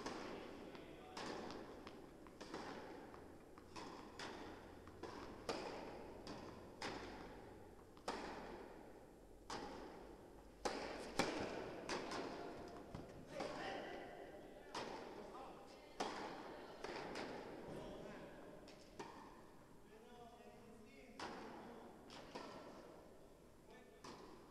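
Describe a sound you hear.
Ball bounces and hits echo around a large indoor hall.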